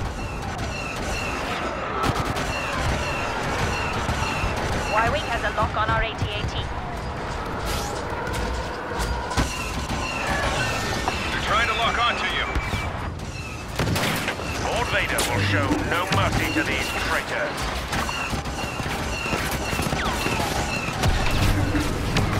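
Blaster fire zaps and crackles in rapid bursts.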